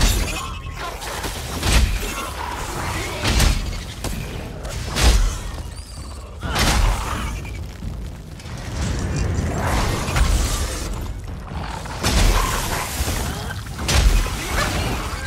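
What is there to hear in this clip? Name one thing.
Magic spells crackle and burst in a game.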